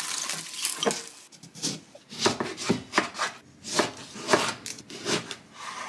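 A knife cuts through a lemon on a wooden board.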